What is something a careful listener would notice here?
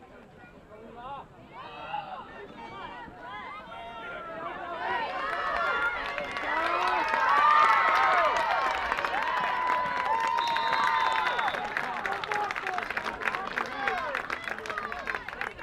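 A crowd of spectators cheers and shouts outdoors, growing louder and then easing off.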